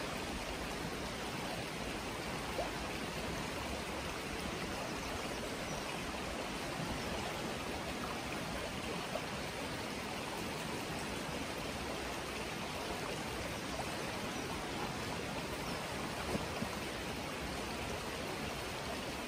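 Floodwater rushes and swirls past.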